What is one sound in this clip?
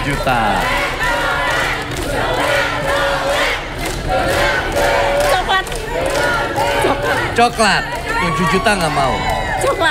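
A crowd of young women cheers and shouts loudly.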